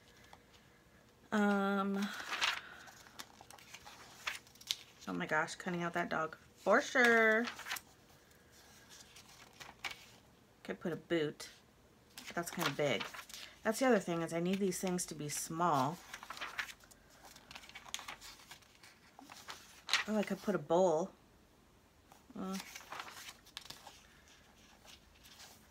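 Glossy magazine pages rustle and flap as they are turned.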